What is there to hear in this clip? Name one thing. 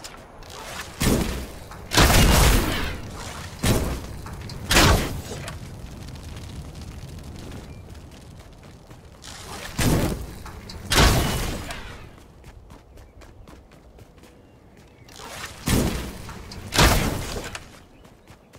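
Bow shots twang and thud in loud bursts.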